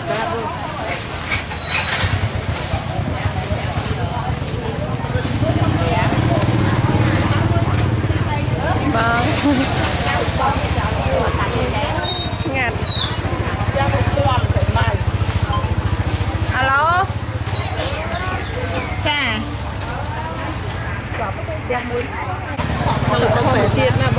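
Motorbike engines hum and pass by close.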